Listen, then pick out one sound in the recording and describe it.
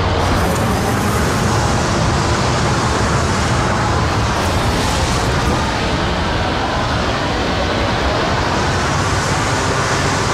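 A spaceship engine roars and hums loudly.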